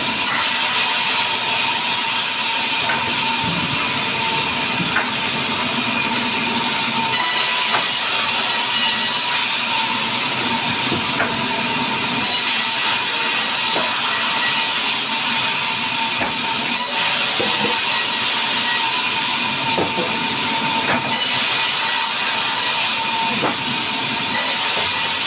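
A band saw runs with a loud, steady whine and roar.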